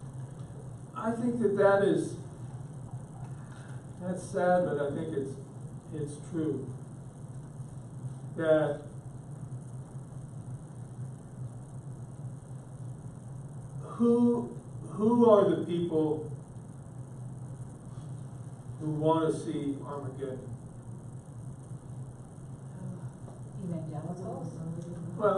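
An elderly man speaks calmly in short bursts, with pauses.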